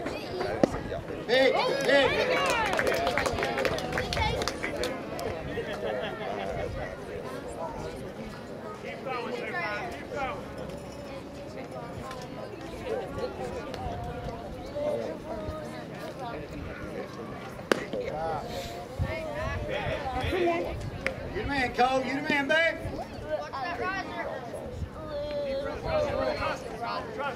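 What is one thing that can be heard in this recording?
Young men call out and chatter across an open field.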